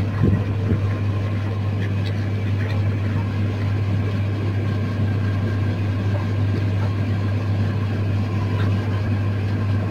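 A hen pecks at food on a metal plate.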